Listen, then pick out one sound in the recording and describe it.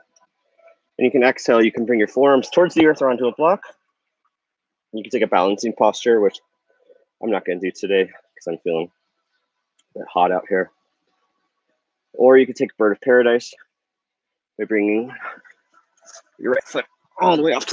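A man speaks calmly and clearly, close to a microphone, with pauses between phrases.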